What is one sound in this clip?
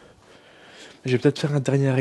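A man speaks with a deep voice, close by.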